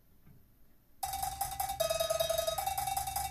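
Drums beat in a steady rhythm.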